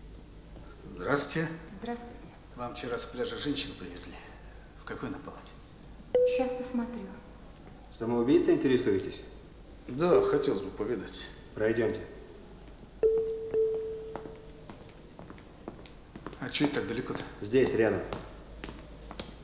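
Two men talk, their voices echoing in a long hall.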